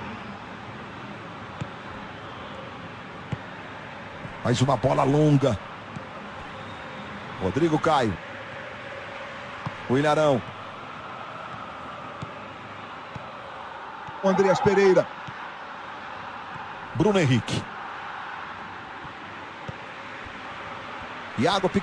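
A large stadium crowd murmurs and chants steadily in the background.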